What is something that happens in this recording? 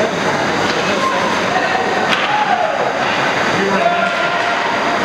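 Young players shout in the distance across an echoing rink.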